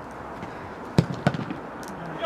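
A football is kicked with a hard thud.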